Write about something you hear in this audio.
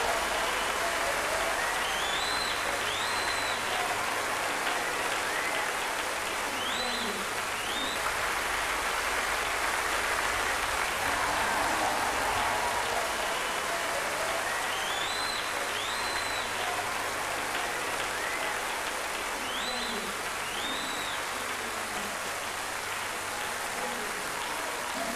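A large crowd claps and applauds steadily.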